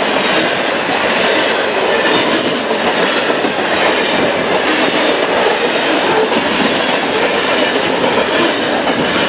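Hopper cars of a freight train roll past, wheels clattering on the rails.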